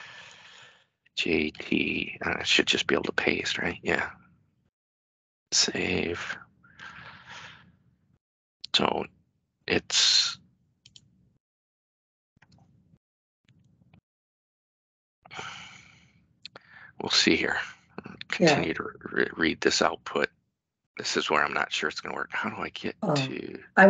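A man talks calmly through a headset microphone on an online call.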